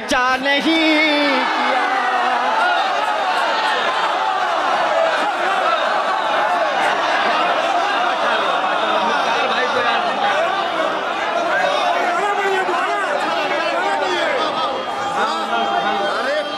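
A large crowd cheers and shouts in approval.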